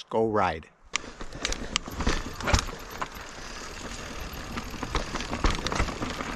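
A bicycle frame clatters and knocks over bumps.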